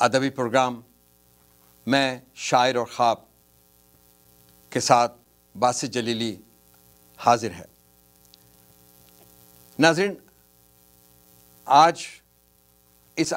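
A middle-aged man speaks calmly in short phrases into a close microphone, pausing between them.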